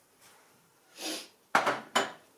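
A small cup is set down on a hard counter.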